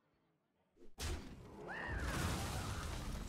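Game creatures clash with a crunching impact.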